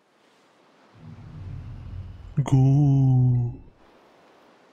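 A deep monster roar rumbles and then rises into a loud, drawn-out cry.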